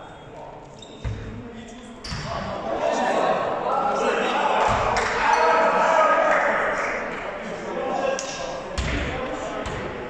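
A ball bounces on a wooden floor in a large echoing hall.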